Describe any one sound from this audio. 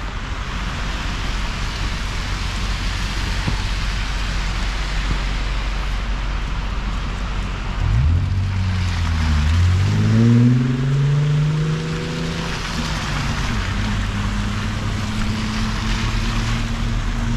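Tyres hiss through slush on a city street.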